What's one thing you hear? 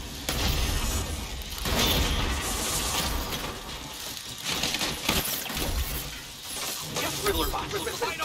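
Metal robots clash and smash apart in a fight.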